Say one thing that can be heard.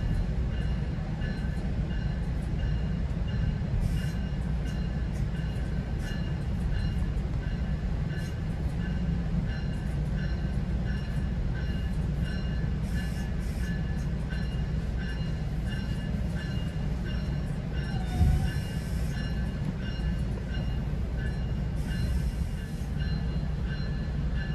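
A train rumbles steadily as it rolls slowly along the track.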